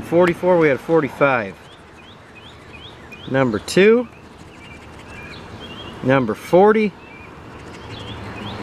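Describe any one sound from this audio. A coin scratches at a paper card.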